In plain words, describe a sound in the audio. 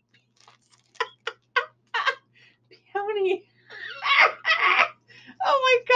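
A middle-aged woman laughs heartily close by.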